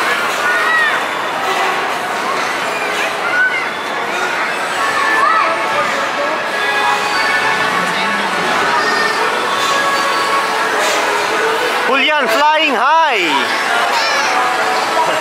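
A lively crowd of children and adults chatters and calls out nearby.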